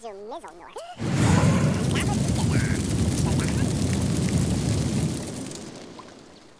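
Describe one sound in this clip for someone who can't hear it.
A bonfire roars and crackles.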